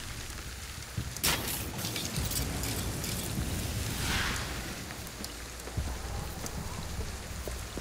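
Rain pours down steadily.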